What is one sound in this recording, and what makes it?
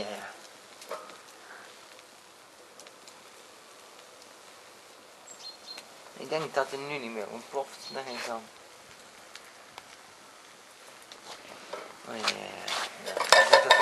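A fire crackles and flickers.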